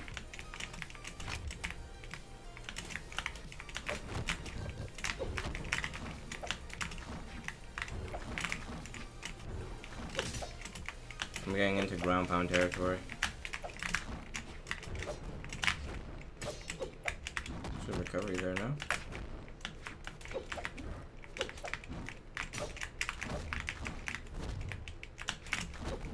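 Game sword slashes and hits clatter rapidly.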